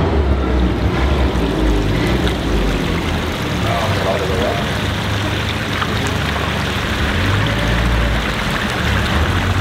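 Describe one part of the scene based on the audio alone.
Water trickles and splashes steadily over rocks into a pool.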